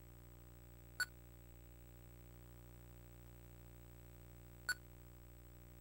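A short, sharp electronic beep sounds twice.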